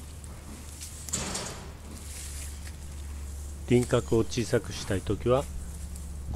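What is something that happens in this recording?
Pruning shears snip through a small branch.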